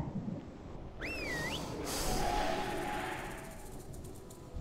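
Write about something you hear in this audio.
Magic spells whoosh and shimmer during a fight.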